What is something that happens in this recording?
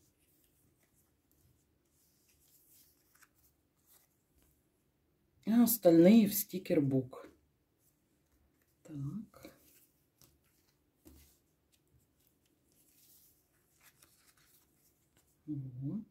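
Paper stickers rustle softly as they are handled.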